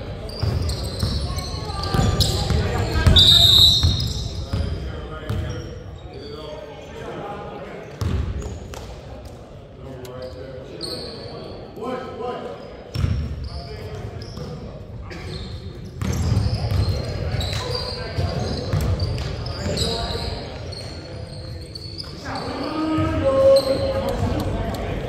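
A basketball bounces on a wooden court, echoing through a large hall.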